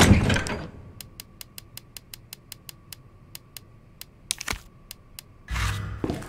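Menu ticks click rapidly in a quick, even series.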